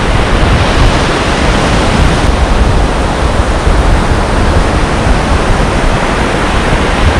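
Strong wind buffets outdoors, with a deep rumble.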